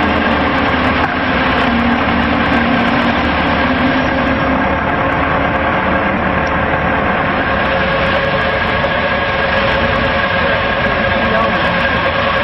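A diesel engine runs with a loud, steady rumble close by.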